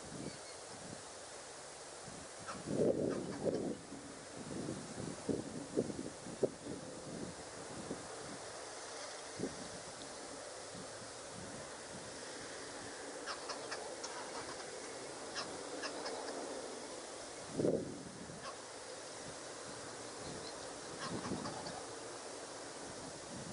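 Floodwater rushes and churns steadily outdoors.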